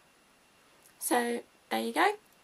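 A young woman speaks close by, clearly and calmly.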